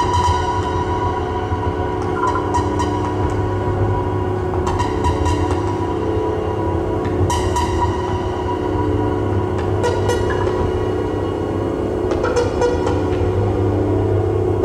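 A modular synthesizer plays steady, droning electronic tones.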